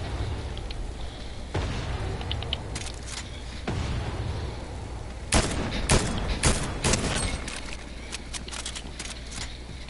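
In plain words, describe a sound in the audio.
Electric zaps crackle.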